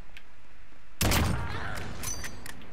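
A sniper rifle fires a single shot.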